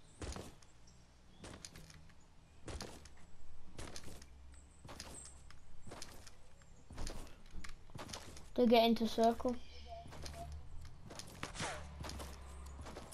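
Footsteps thud quickly and evenly across soft ground.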